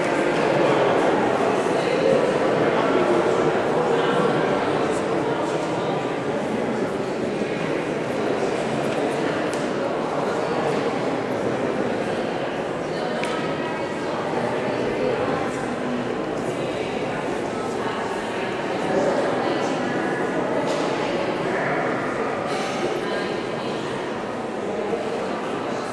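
Men talk quietly nearby in a large echoing hall.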